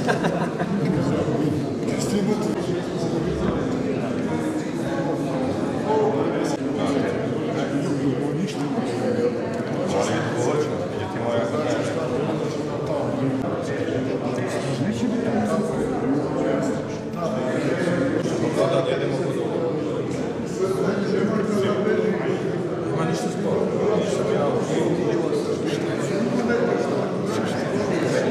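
A crowd of adults chatters throughout in a room with some echo.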